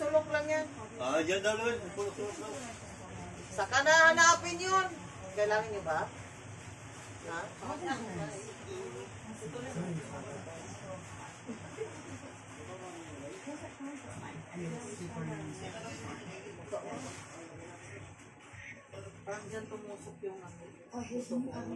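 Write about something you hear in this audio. Another woman talks calmly close by.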